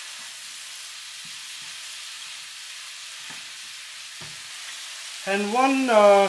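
Vegetables sizzle steadily in a hot pan.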